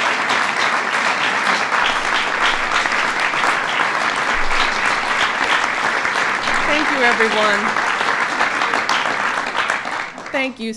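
A crowd applauds loudly and cheers.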